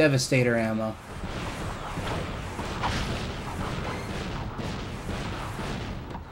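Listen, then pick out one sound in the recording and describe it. Rapid gunfire and small blasts crackle and pop.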